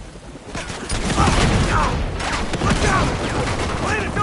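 Gunshots crack.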